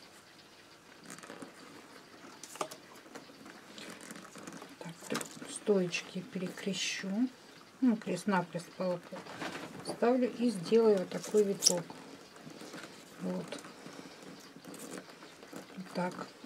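Stiff wicker rods rustle and creak as hands weave them.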